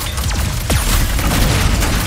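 Electric zaps crackle sharply.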